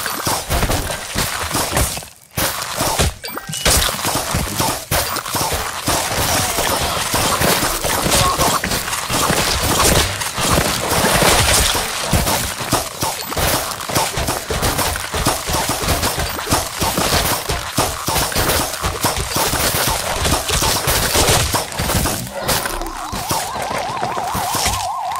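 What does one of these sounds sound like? Cartoon plants fire with quick popping shots.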